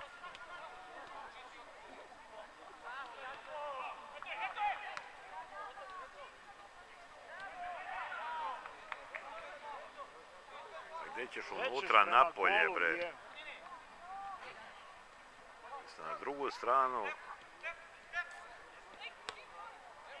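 Young girls shout and call out across an open playing field.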